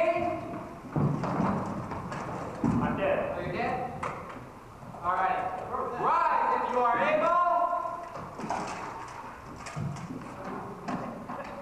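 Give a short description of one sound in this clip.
Wooden weapons knock against shields and armour.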